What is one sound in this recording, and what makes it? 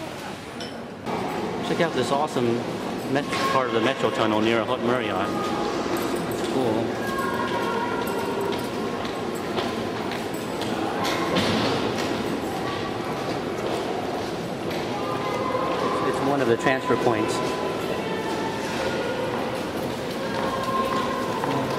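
A crowd murmurs in a large echoing tunnel.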